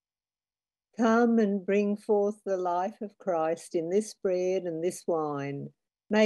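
A woman sings a hymn alone, heard through an online call.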